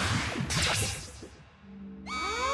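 Rapid game hit effects crackle and chime.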